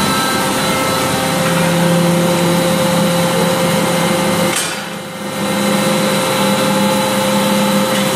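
A forklift engine runs.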